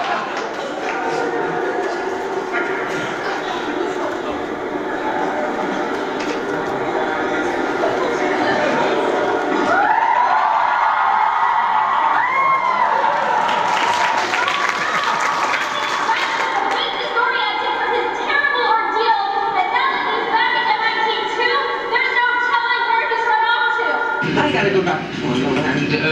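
A large crowd chatters in an echoing hall.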